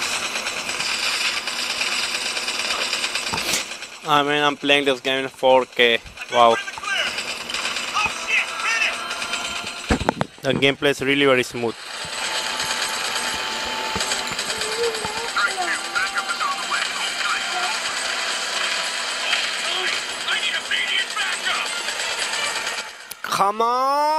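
Gunfire and explosions from a game play through a small phone speaker.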